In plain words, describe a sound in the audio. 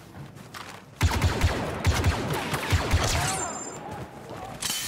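Blaster fire crackles in rapid bursts.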